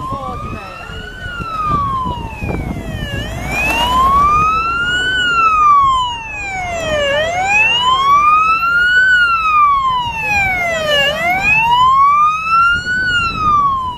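A fire engine's siren wails, rising and falling.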